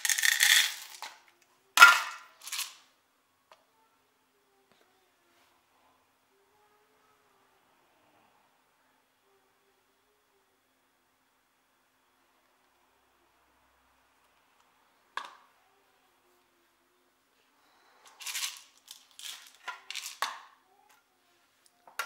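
Coffee beans rattle in a plastic cup.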